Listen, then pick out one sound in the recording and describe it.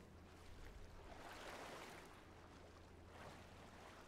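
Water splashes as hands wade through it.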